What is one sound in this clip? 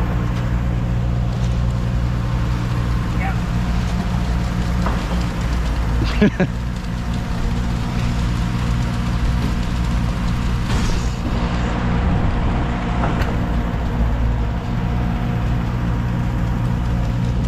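A shovel scrapes through wet concrete.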